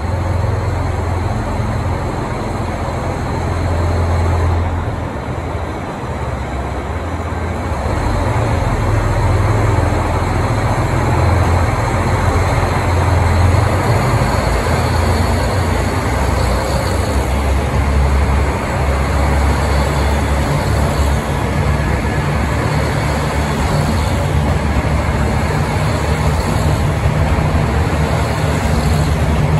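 A train's diesel engine rumbles as the train rolls slowly into an echoing station.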